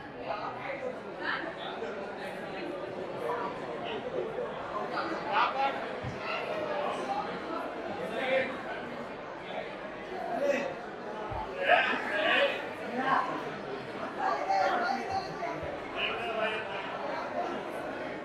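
Several young voices chatter and call out nearby.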